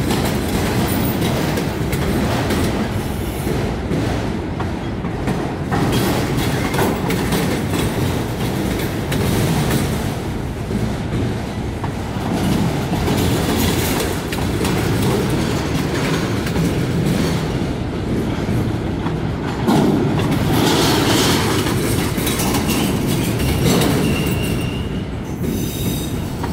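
Steel wheels squeal and clank on the rails.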